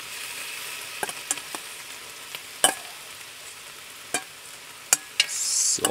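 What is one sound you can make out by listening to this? A metal ladle clinks against a metal bowl.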